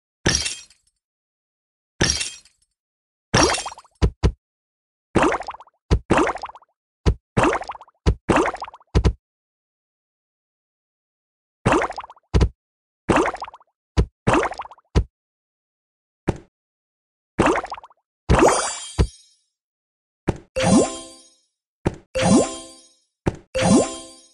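Game sound effects chime and pop as blocks are cleared.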